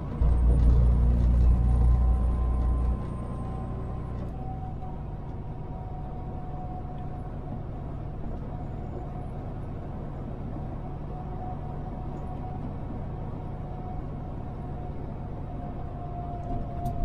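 A car engine hums steadily while driving down a road.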